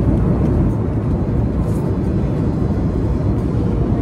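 A boy slurps noodles close by.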